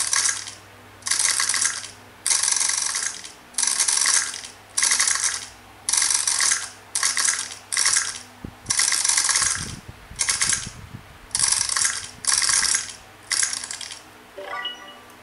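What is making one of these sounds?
Quick chopping sound effects play from a tablet's speaker in short, repeated bursts.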